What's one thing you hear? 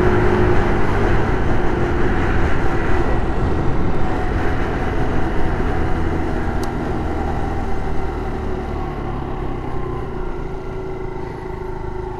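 A scooter engine hums steadily and slowly quietens as the scooter slows down.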